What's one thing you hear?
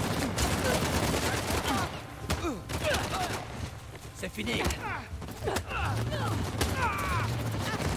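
Blows thud during a fistfight.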